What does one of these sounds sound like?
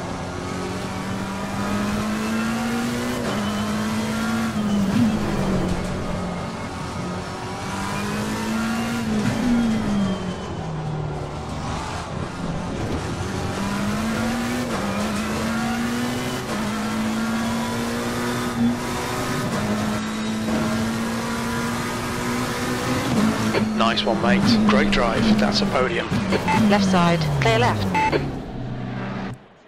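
A racing car engine roars, climbing in pitch and dropping with each gear change.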